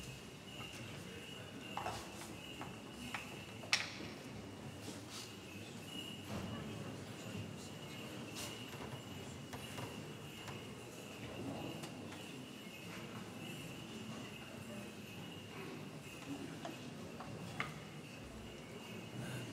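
A crowd murmurs softly in a large echoing hall.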